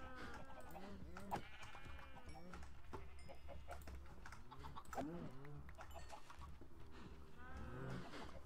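Cows moo repeatedly.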